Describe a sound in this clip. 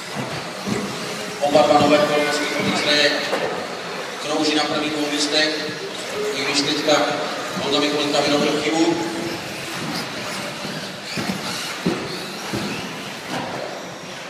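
A small electric toy car whirs as it races across a hard floor in a large echoing hall.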